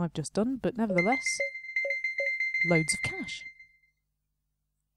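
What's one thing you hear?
A bright electronic chime rings out as a sale is completed.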